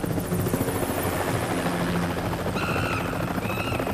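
A helicopter's rotor thumps steadily overhead.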